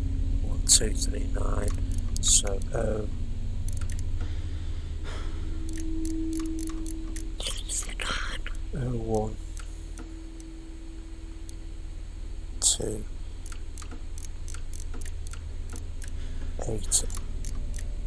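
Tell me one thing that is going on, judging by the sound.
A metal combination lock dial clicks as it turns.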